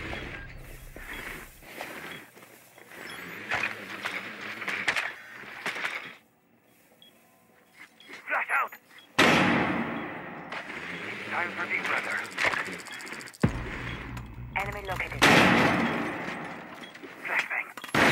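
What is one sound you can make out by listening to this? Gunshots rattle in quick bursts.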